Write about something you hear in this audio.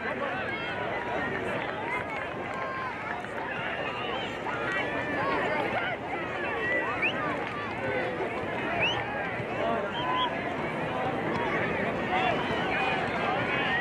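Many young voices shout and call out across an open field.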